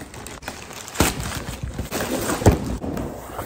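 A cardboard box thuds and scrapes as it is handled.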